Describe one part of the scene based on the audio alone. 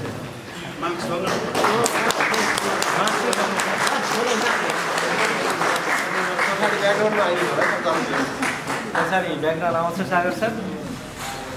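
People applaud in a hall.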